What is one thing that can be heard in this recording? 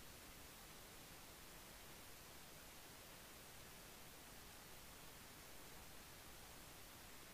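A light wind blows steadily over open water.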